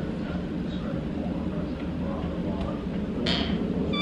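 A door handle clicks as a door opens.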